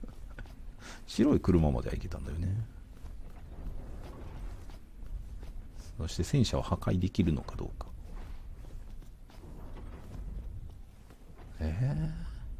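Footsteps crunch quickly on snowy pavement.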